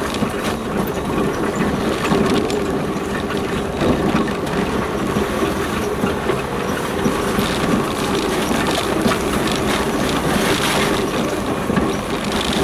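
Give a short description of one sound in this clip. Tyres rumble and crunch over a rough dirt track.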